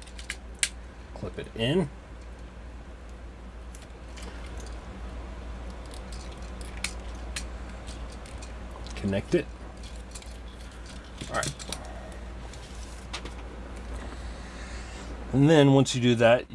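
Plastic toy parts click and snap as they are twisted into place.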